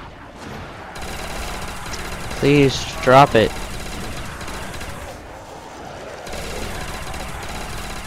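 A heavy weapon fires with a steady roaring blast.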